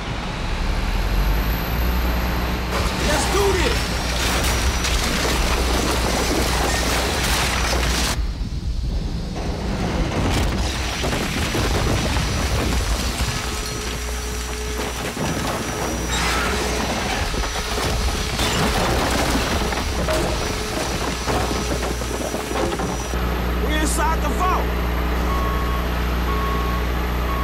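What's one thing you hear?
A heavy machine engine hums low and steady.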